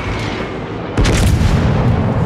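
Heavy naval guns fire a loud booming salvo.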